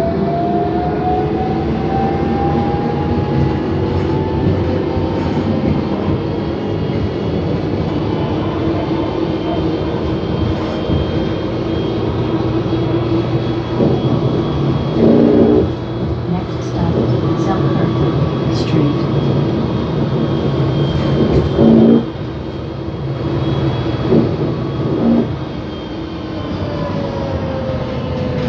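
Tyres roar on the road as a bus moves.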